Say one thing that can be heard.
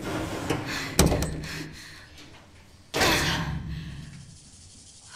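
An elevator door rumbles and thuds against feet.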